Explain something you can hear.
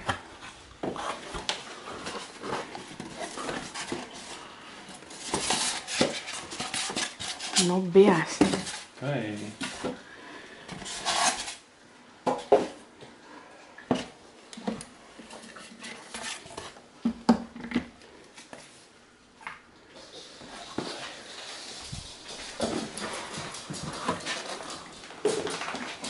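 Cardboard and foam packing rustle and scrape as hands unpack a box.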